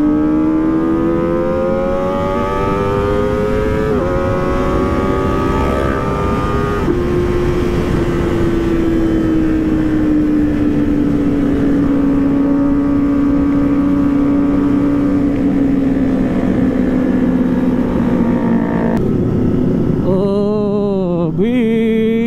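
A motorcycle engine roars steadily, rising in pitch through the gears and revving sharply.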